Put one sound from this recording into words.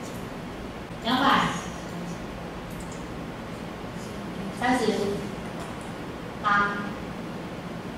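A young woman speaks into a microphone in short phrases, heard through a loudspeaker in a room with some echo.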